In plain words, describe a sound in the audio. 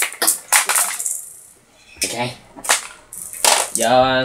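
Plastic toy pieces clack and knock on a game board.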